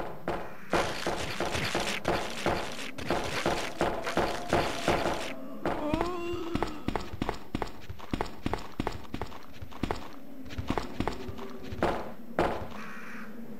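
Footsteps clatter quickly on a hard floor.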